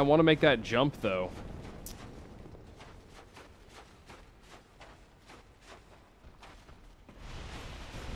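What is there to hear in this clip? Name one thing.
Armoured footsteps run across a stone floor.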